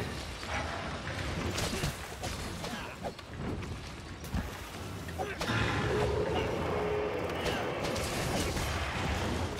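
A large monster growls and roars.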